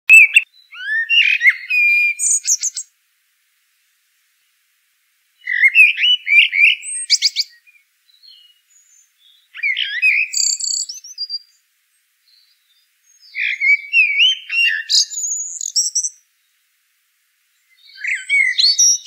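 A small bird sings in bursts of chirps and trills, with quiet pauses between.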